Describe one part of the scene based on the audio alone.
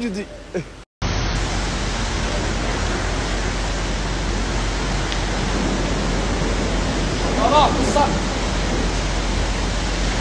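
A truck engine idles steadily.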